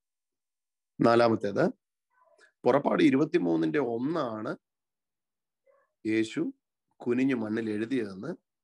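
A man speaks calmly and warmly into a close microphone.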